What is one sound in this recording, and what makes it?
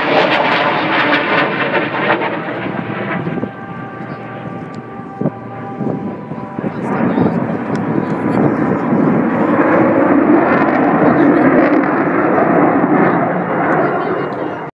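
A jet engine roars overhead, loud and rumbling, with its pitch shifting as it passes.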